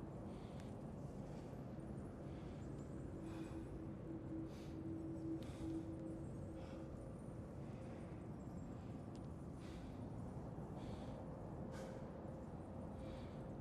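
Wind blows steadily through a snowy cave.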